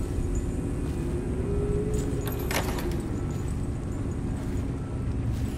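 A metal gate creaks as it swings open.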